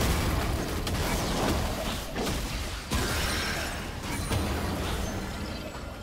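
Magical spell effects crackle and burst in quick succession.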